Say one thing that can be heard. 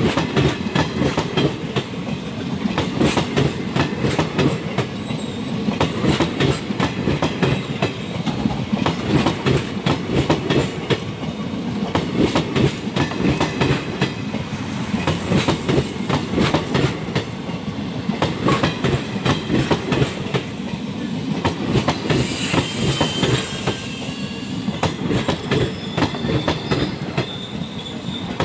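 Train wheels clatter rapidly over rail joints.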